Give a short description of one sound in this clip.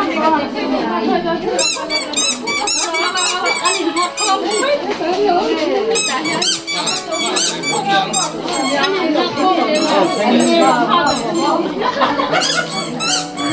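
A crowd of women talk loudly and excitedly close by.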